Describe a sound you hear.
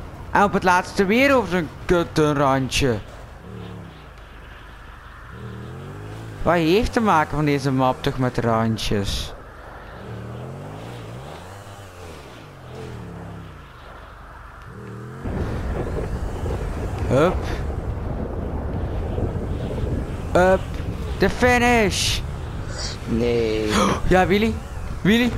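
A motorbike engine revs up and down.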